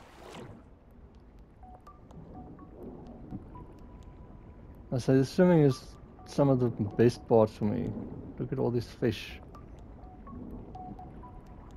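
Water bubbles and gurgles softly underwater.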